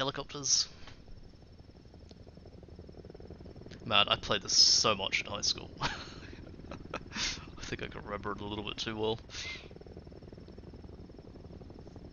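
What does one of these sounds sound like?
A helicopter's rotor chops steadily overhead.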